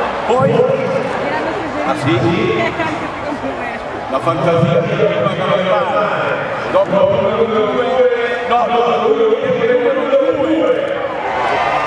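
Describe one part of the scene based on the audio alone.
An elderly man speaks through a loudspeaker microphone, echoing across the stadium.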